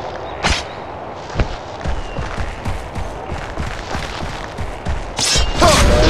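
Footsteps run through grass.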